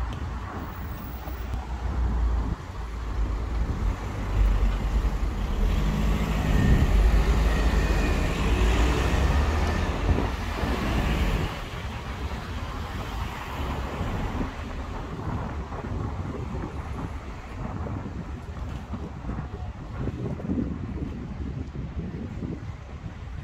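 Car engines hum and tyres roll past on the road.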